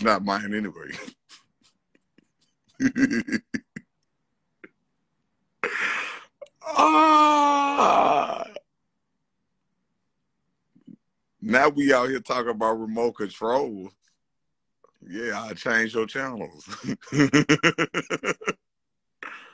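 A man laughs loudly close to a phone microphone.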